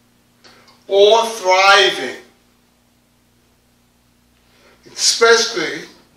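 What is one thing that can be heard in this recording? A man preaches with emphasis, pausing between phrases.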